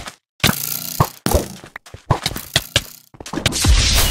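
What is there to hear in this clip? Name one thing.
A sword strikes in quick blows.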